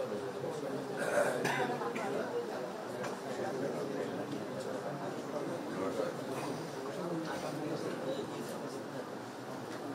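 A middle-aged man speaks steadily into microphones in a slightly echoing room.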